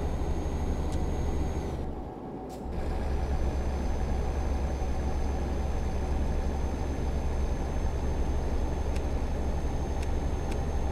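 A truck engine drones steadily, dipping briefly as the gears change.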